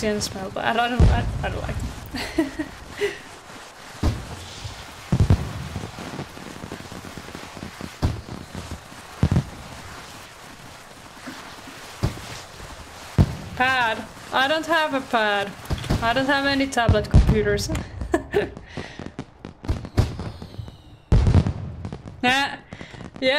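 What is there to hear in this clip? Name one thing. Fireworks pop and crackle in a game.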